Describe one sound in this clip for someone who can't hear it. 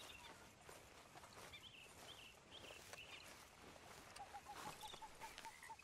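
A horse's hooves thud slowly on soft ground.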